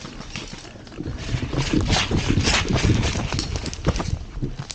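A person runs closer, feet thudding and rustling through leaves.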